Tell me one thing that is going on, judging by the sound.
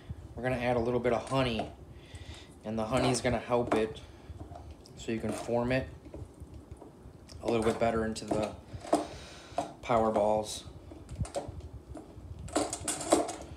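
A spoon scrapes and clinks against a bowl while stirring a thick mixture.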